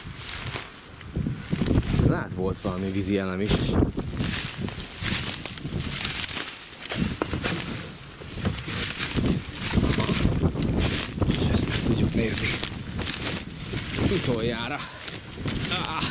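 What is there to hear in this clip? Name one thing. Dry grass rustles and crunches underfoot.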